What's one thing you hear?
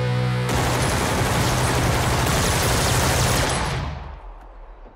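A machine gun fires a long, rapid burst of loud shots outdoors, then the sound fades away.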